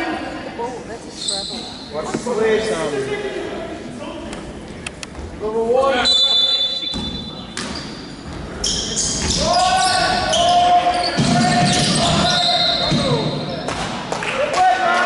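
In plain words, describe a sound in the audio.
Sneakers squeak sharply on a wooden floor in a large echoing hall.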